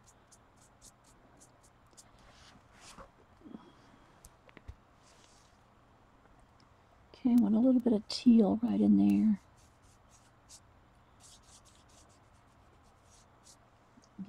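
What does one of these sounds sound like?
A brush dabs softly on a paper surface.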